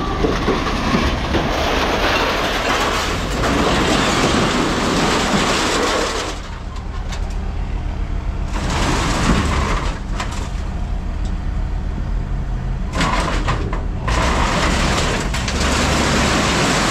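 A heavy machine's engine rumbles steadily up close.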